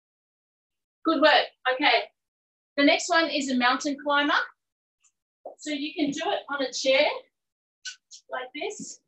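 A woman speaks clearly and with energy, close to a microphone.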